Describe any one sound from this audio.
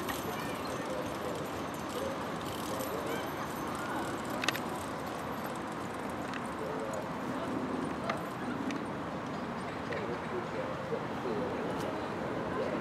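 Horses' hooves thud on grass at a trot.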